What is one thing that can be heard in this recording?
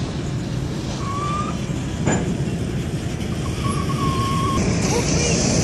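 Steel train wheels squeal briefly.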